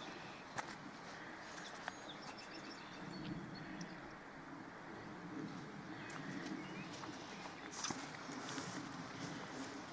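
Dry grass rustles and crackles underfoot.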